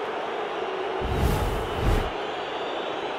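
Two deep whooshes sweep past in quick succession.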